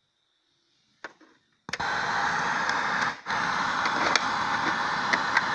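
A game cartridge clicks into a console.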